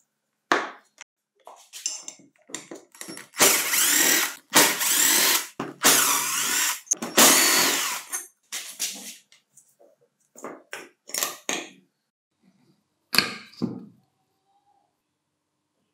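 Metal engine parts clink and scrape against each other.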